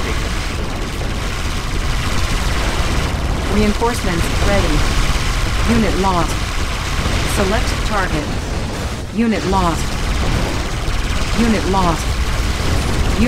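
Explosions boom and weapons fire in a battle.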